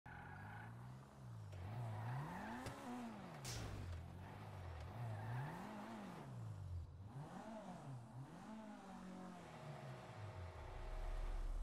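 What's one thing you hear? A car engine revs up and down as the car drives slowly.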